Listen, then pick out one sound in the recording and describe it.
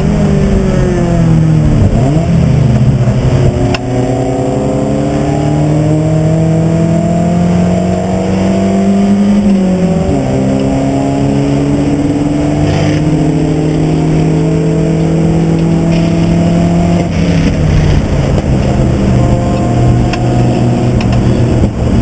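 A race car engine roars loudly from inside the cabin, rising and falling in pitch as the gears shift.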